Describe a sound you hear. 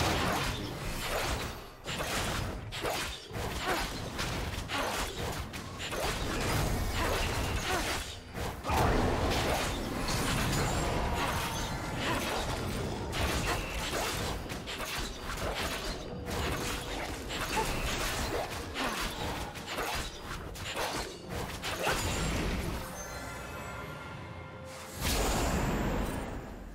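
Game spell effects and blows crackle and clash in quick succession.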